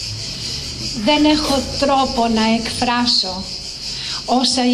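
A middle-aged woman speaks warmly through a microphone.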